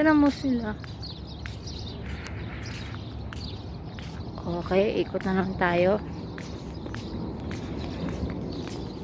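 Footsteps tap on paving at a walking pace.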